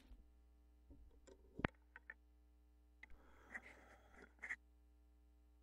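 A turntable's tonearm clicks as it is lifted and set back.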